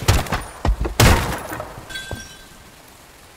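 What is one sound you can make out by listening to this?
An explosion booms and rumbles away.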